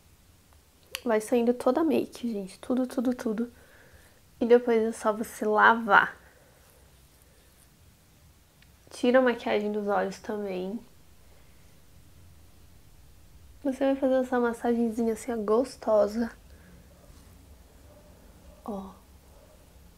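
A young woman talks calmly and close to a microphone, in short bursts with pauses.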